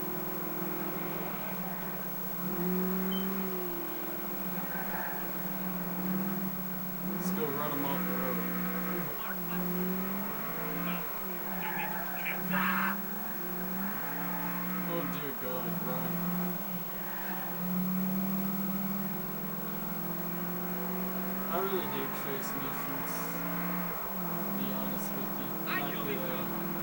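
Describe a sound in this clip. A muscle car engine revs through a television speaker.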